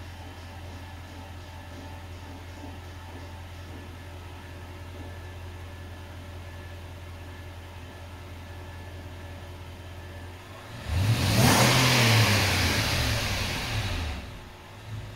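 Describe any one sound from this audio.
A car engine idles with a low, steady hum indoors.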